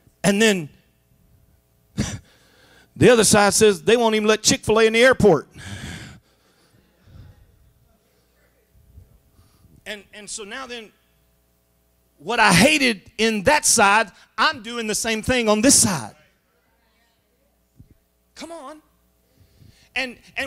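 A man speaks with animation into a microphone, his voice filling a large room.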